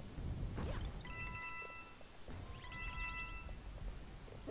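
Coins chime as they are collected in a video game.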